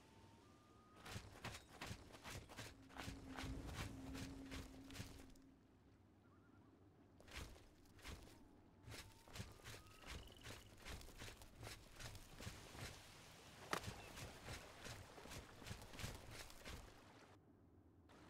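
Footsteps crunch steadily on a stone path.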